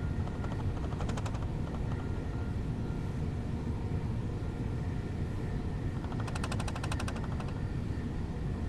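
Wheels clatter rhythmically over rail joints.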